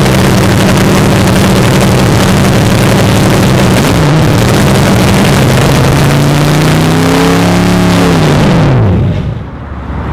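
A loud car engine idles roughly and revs up, then cuts off.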